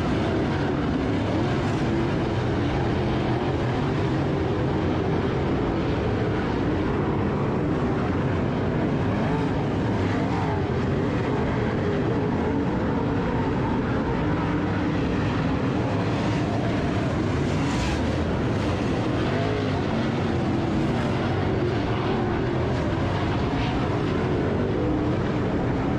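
Race car engines roar loudly as cars race by outdoors.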